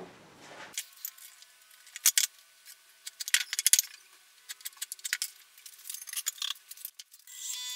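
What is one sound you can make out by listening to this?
Wooden pieces knock and tap against each other.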